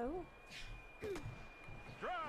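A bat cracks against a ball in a video game.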